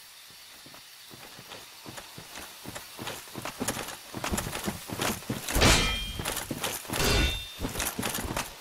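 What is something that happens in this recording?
Armoured footsteps crunch on the ground.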